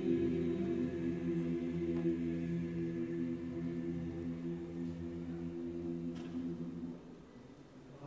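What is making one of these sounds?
A large mixed choir sings a long, held chord that rings in an echoing hall.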